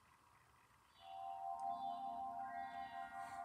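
Orchestral music swells from a television speaker.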